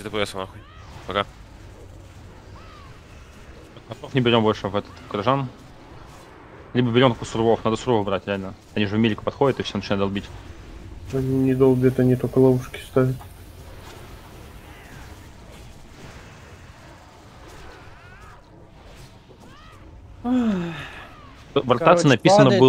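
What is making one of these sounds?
Magic spells crackle and whoosh during a fight.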